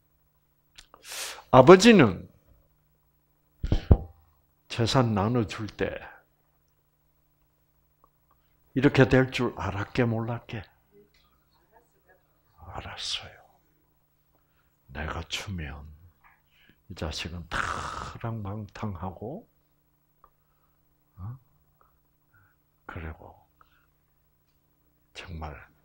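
An elderly man speaks calmly in short bursts with pauses, heard through a microphone.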